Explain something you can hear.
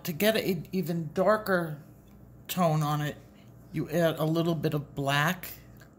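Pencils click together in a hand.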